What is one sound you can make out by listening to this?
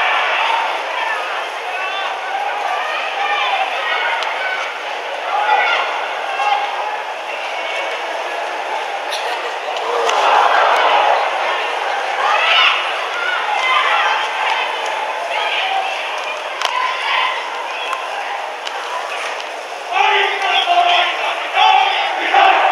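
Young women shout and call to one another outdoors in the distance.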